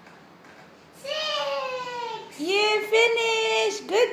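A young boy sings out loudly in long drawn-out notes, close by.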